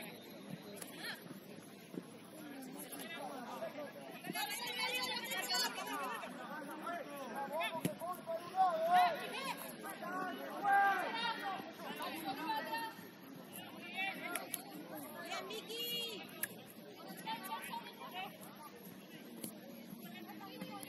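Young women shout and call out to each other outdoors, some way off.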